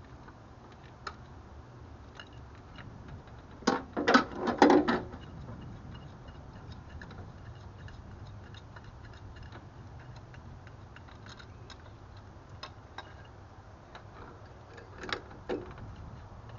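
Metal parts clink and knock as hands work on a car engine.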